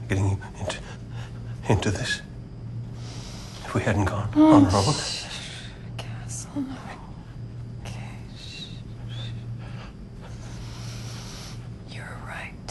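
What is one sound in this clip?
Wind howls steadily outdoors.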